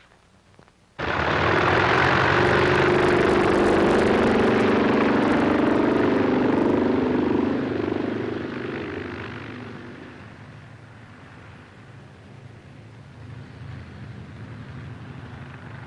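Propeller biplanes roar as they take off across a field and fade into the distance.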